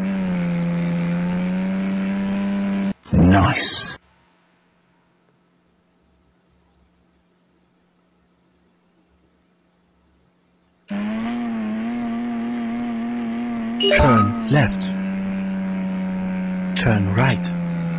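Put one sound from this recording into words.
A car engine drones steadily, rising and falling in pitch.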